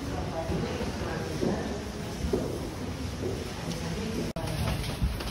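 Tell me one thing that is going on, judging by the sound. Several adults murmur and chat nearby in a large echoing hall.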